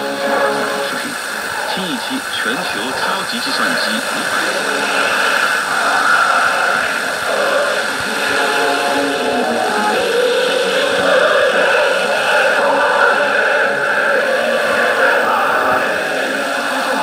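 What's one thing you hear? A radio crackles and hisses with static.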